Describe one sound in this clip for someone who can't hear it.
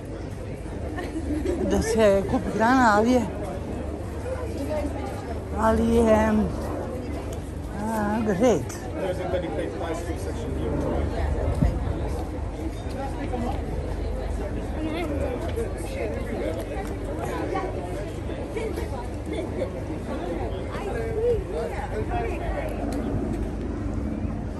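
Men, women and children chatter nearby in a crowd outdoors.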